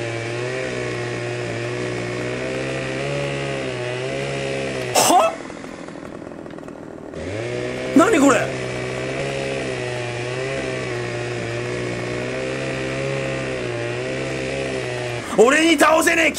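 A chainsaw engine runs at a steady high buzz.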